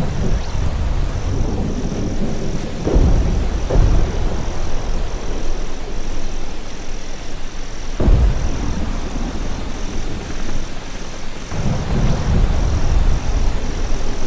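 Tall grass rustles as a figure moves through it.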